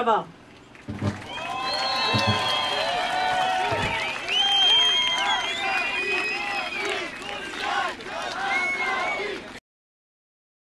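A crowd chants and cheers outdoors.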